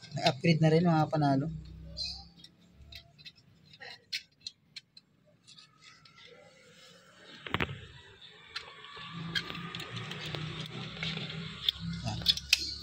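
Metal parts click and clink as they are fitted together by hand.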